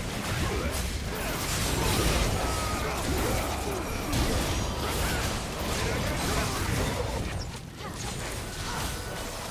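Magic blasts and weapon clashes from a battle game crackle and boom in quick bursts.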